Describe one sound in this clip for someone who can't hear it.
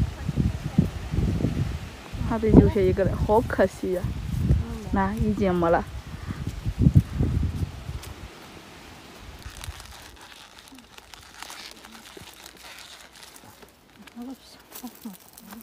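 Leaves rustle as fruit is picked from a branch.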